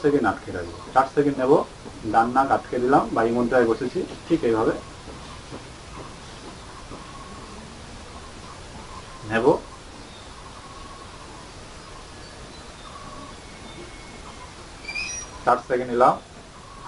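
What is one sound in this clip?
A man speaks calmly close to a microphone, with long pauses.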